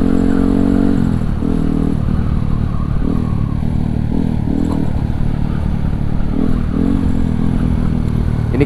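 A motorcycle engine drones and revs up and down close by.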